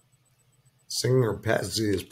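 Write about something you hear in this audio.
A man speaks close to a microphone, calmly and clearly.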